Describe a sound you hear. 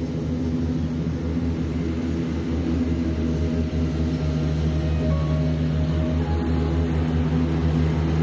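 A ride-on lawn mower engine drones steadily nearby.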